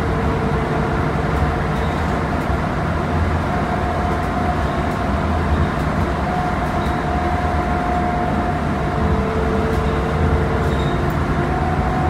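A bus engine rumbles and whines steadily while the bus drives along.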